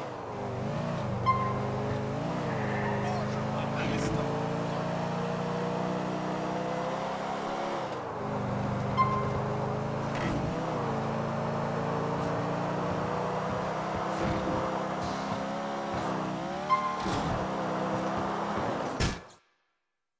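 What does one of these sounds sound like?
A car engine hums steadily as a car drives along, rising and falling in pitch.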